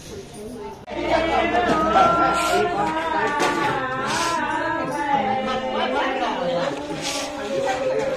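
A woman sings outdoors.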